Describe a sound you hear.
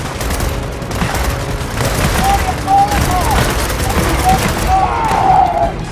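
Rapid gunfire rattles in a firefight.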